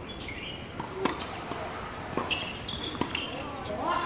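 A tennis racket hits a ball.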